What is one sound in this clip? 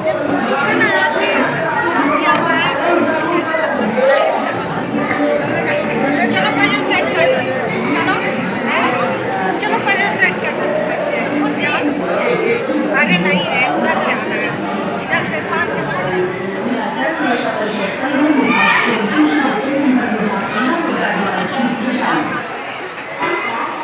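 A crowd of men, women and children chatters all around in a large echoing hall.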